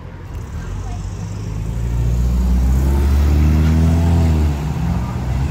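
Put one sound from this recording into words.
A van drives past close by, its engine humming.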